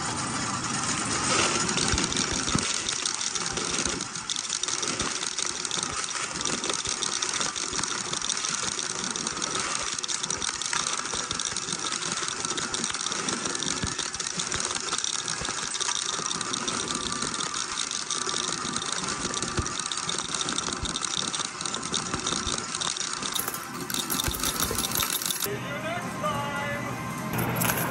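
Metal coins clink and clatter as a pusher machine sweeps them along.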